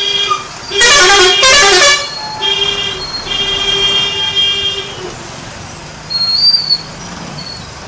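Motorcycle engines hum as they pass close by.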